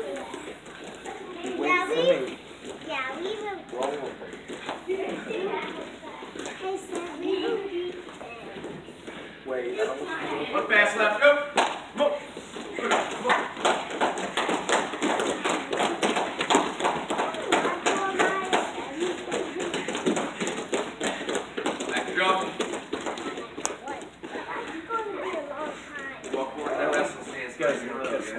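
Children shout and call out excitedly in a large echoing hall.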